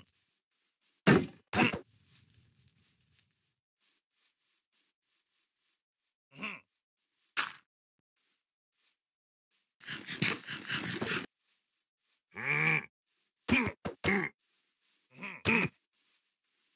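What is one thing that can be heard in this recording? A sword strikes with sharp hits.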